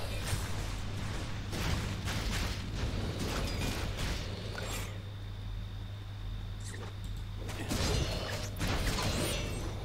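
Magical fire bursts crackle and whoosh.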